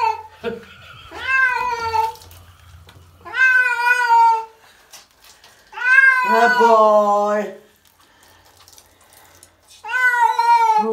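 A cat meows loudly and plaintively, again and again.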